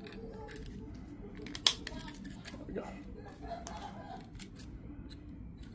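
A plastic key fob clicks and rattles as it is handled.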